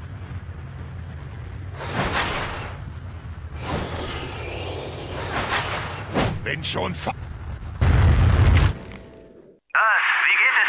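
A jetpack roars and whooshes in flight.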